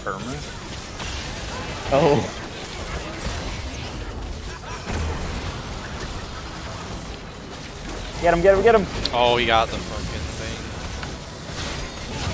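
Magic blasts and weapons clash in a fast fight.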